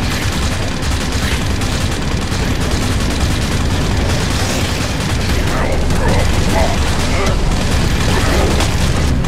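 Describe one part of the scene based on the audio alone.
Monsters screech and growl.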